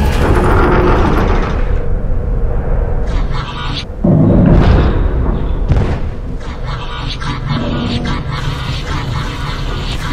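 A flying machine's engines roar steadily.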